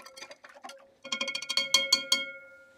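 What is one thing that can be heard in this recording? A glass rod taps and rings against glass.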